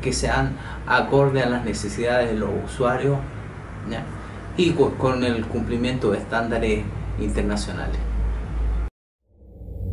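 A middle-aged man speaks calmly and clearly into a nearby microphone.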